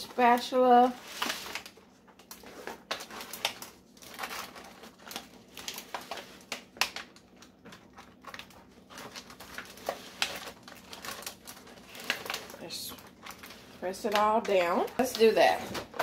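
A spatula scrapes and stirs thick batter in a foil pan.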